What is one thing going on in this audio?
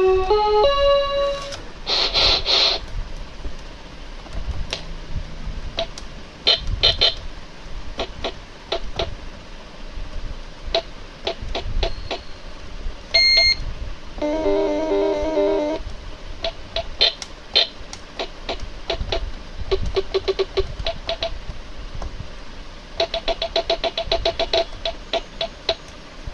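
An electronic keyboard plays short tunes and beeps as buttons are pressed.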